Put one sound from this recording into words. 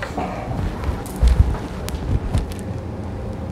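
Footsteps thump on the floor.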